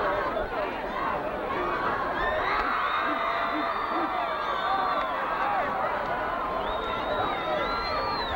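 A crowd of players and spectators shouts and cheers outdoors.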